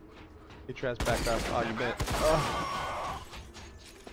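A rifle fires a loud, sharp shot.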